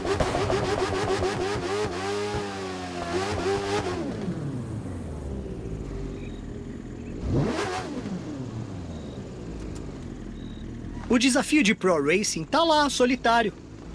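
A motorcycle engine revs loudly in sharp bursts.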